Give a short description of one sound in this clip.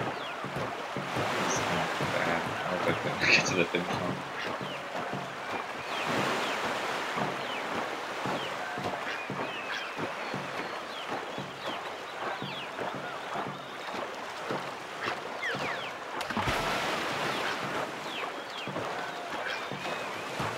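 Water splashes as a paddle strokes through it.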